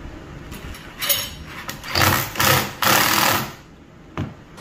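An impact driver whirs and rattles as it drives in a screw.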